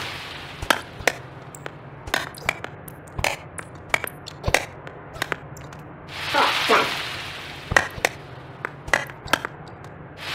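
Tennis rackets strike a ball with sharp pops, again and again.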